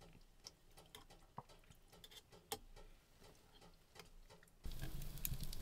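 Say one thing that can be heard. A spoon clinks and scrapes against a bowl.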